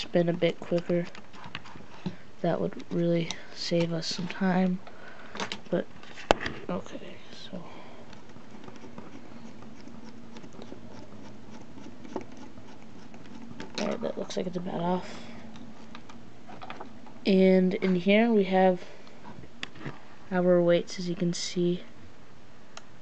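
Plastic toy parts click and rattle as hands handle them.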